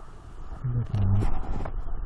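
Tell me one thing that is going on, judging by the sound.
Shoes scrape and knock on rock close by.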